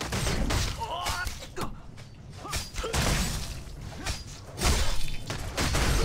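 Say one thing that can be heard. Blows strike with sharp thuds.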